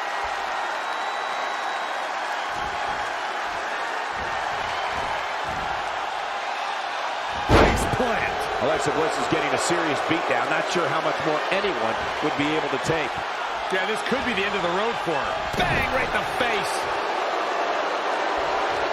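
A large crowd cheers and roars throughout.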